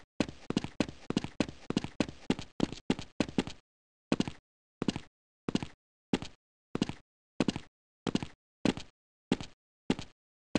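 Footsteps thud on a hard floor at a steady pace.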